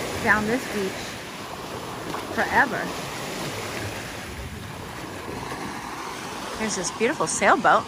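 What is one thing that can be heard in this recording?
Small waves wash and splash against the shore.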